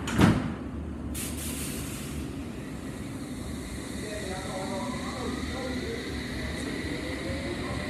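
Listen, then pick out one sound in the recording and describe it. A stationary train hums steadily.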